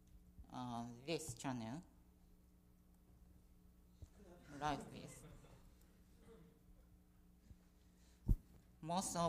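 A woman speaks through a microphone in short animated bursts.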